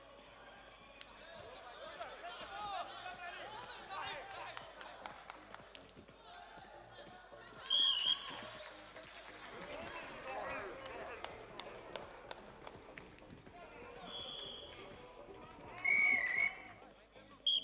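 Men shout encouragement in a large echoing hall.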